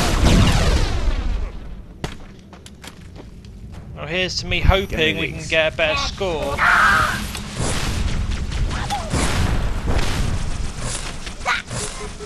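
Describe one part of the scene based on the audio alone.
Plasma bolts fire with rapid electronic zaps.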